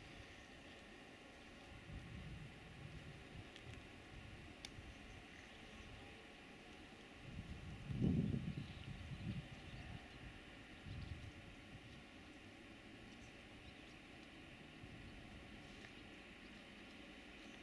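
A diesel locomotive engine rumbles low and steady as a freight train approaches.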